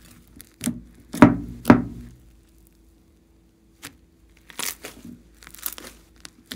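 Fluffy slime squelches and crackles as hands stretch and knead it.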